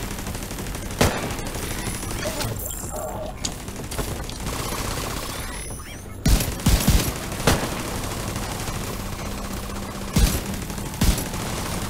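Gunfire rattles in sharp bursts.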